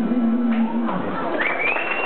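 A man sings a held note into a microphone.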